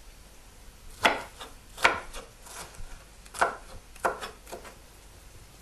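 A knife chops against a wooden board in sharp, uneven knocks.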